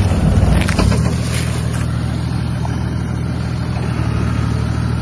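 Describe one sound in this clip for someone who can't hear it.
A heavy vehicle's engine rumbles steadily as it crawls downhill.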